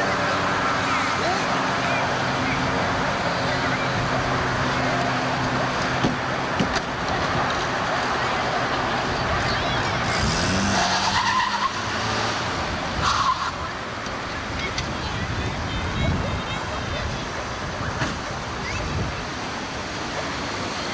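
A small car engine runs nearby.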